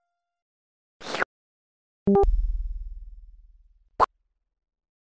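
Beeping and buzzing sound effects from an old computer game play in short bursts.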